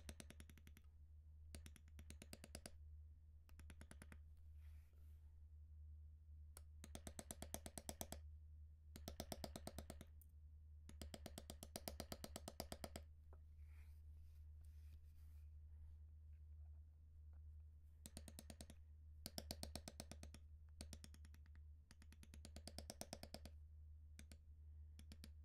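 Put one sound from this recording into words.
A mallet taps rapidly on a metal stamping tool against leather.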